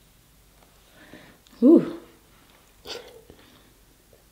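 A young woman makes loud satisfied eating sounds close to a microphone.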